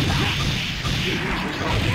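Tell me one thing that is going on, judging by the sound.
Energy beams whoosh and explode.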